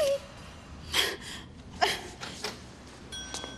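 A young woman groans in pain close by.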